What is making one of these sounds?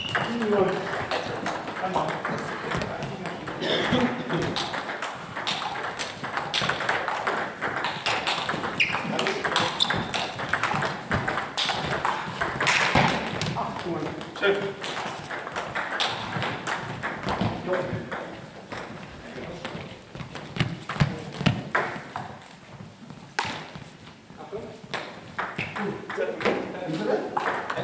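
A table tennis ball clicks back and forth off paddles and a table.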